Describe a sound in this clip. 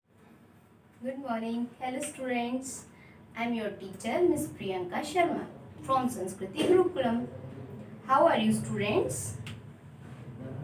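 A young woman speaks clearly and with animation close to a microphone.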